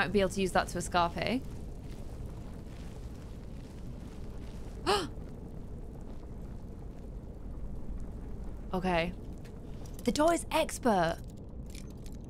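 A young woman speaks animatedly into a close microphone.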